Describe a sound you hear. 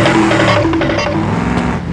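Water splashes under tyres.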